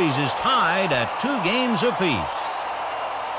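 Men close by shout loudly.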